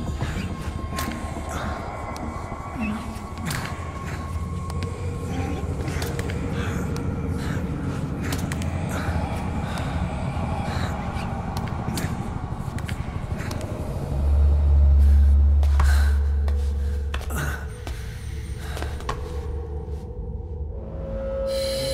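Hands and knees scuff and tap on a hard tiled floor as someone crawls.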